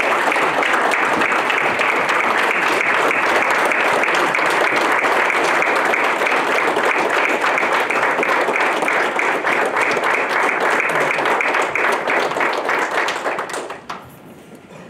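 A crowd applauds loudly in a large hall.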